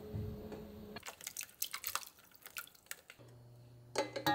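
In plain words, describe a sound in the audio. Water pours from a tap into a metal tray.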